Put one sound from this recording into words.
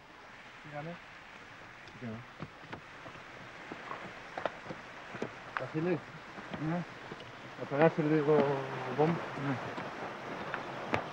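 Footsteps scuff and knock on a stony path.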